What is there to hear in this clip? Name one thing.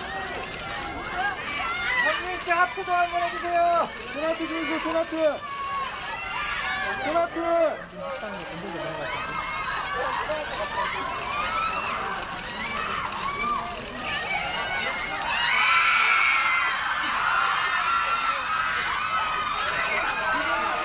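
A crowd of young women scream and call out excitedly nearby.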